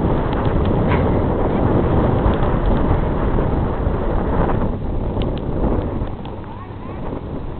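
Wind blusters across an open beach.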